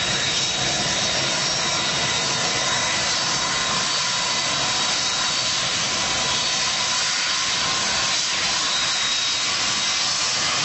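Jet engines roar loudly and steadily as an airliner rolls along a runway.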